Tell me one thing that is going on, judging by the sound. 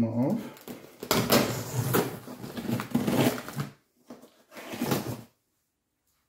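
Hands scrape and rustle against a large cardboard box.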